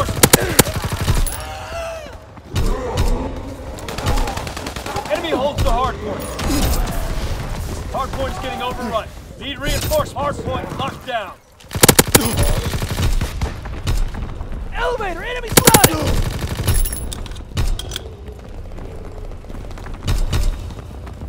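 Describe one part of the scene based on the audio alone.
Gunfire cracks in short rapid bursts.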